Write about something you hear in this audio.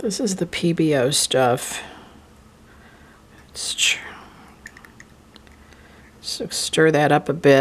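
A lid twists off a small jar with a light scrape.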